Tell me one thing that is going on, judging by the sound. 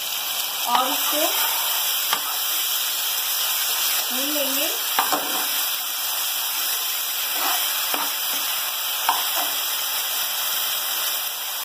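A silicone spatula stirs and taps against a frying pan.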